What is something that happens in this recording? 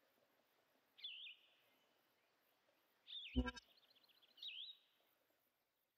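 Short electronic menu chimes beep several times.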